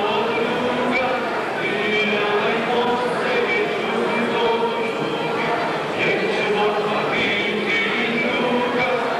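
A group of young women sing together in a steady, ringing melody.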